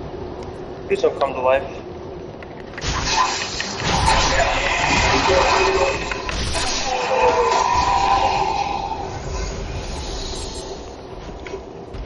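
Steel weapons clash and strike armour in a fierce fight.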